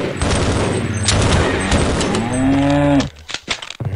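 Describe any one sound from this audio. A metal gate creaks open.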